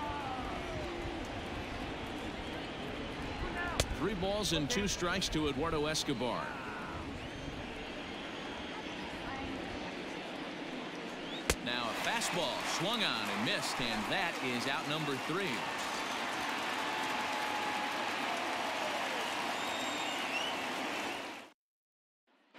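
A stadium crowd murmurs steadily.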